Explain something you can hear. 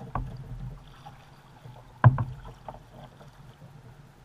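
A paddle splashes through the water.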